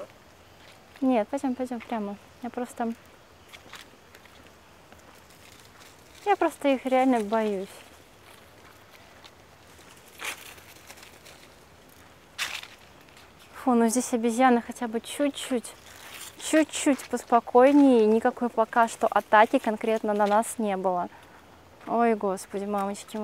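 A young woman speaks calmly close to the microphone.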